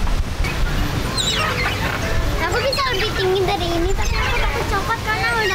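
A young girl laughs and talks nearby.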